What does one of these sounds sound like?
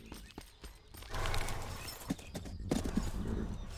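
Wagon wheels roll and creak over stony ground.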